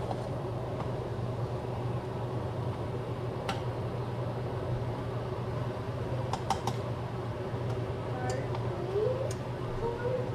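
Water simmers in a saucepan.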